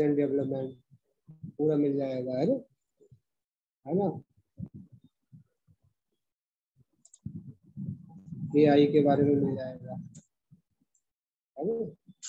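A middle-aged man speaks calmly over an online call, in short bursts with pauses.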